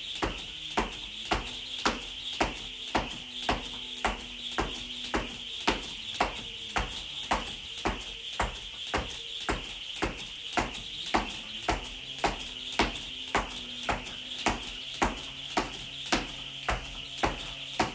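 Feet land lightly on a hard floor with each jump.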